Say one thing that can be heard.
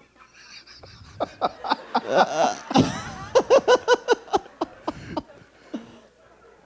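A group of men and women laugh and clap loudly.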